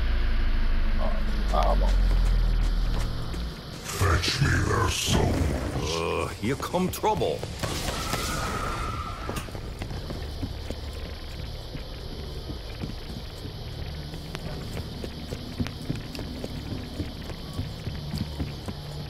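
Footsteps thud steadily across hard floors.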